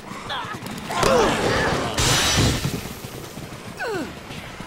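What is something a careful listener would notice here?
Blows thud as a man strikes zombies.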